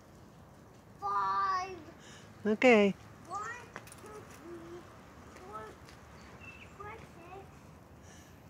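A young child calls out and shouts nearby, outdoors.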